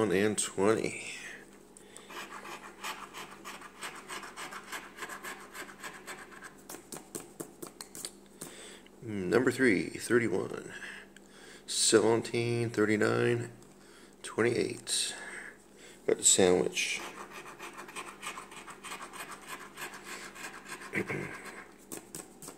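A scratch-off lottery card is scraped in quick strokes.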